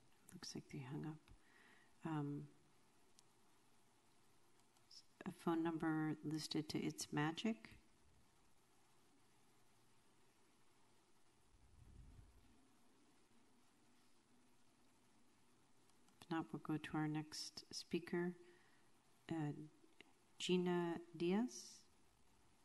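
A woman speaks calmly into a microphone in bursts, with pauses between.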